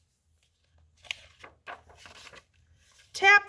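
A hand rustles and taps paper pages.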